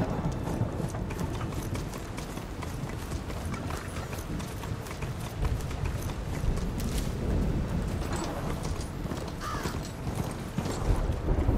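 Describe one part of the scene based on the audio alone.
A heavy mechanical creature gallops, its feet thudding and clanking on the ground.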